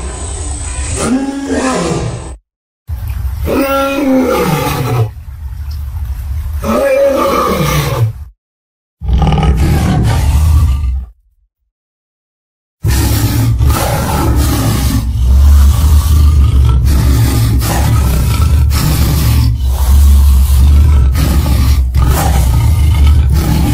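A huge beast roars and bellows deeply, again and again.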